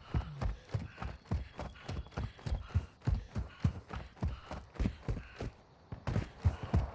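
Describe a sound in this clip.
Footsteps crunch quickly over gravel at a running pace.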